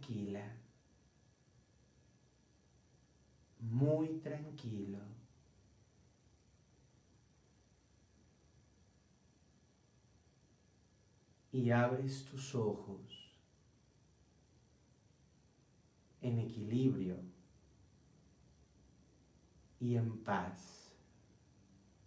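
A man speaks slowly and calmly in short phrases close by, with long pauses between them.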